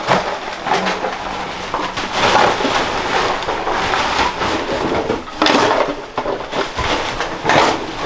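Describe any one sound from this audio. A plastic scoop scrapes through loose trash.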